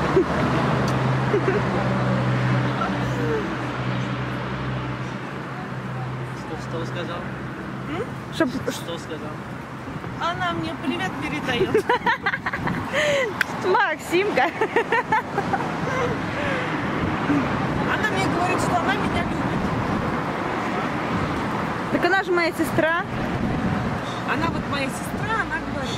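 A man talks and laughs close by.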